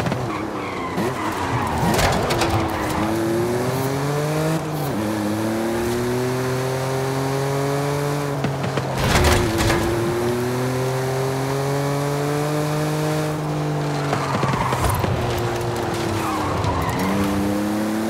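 Tyres squeal on tarmac as a car drifts through bends.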